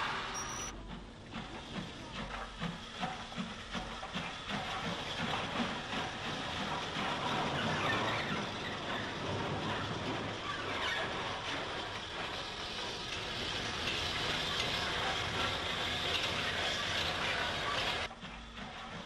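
A train rolls steadily along rails with a rumbling clatter.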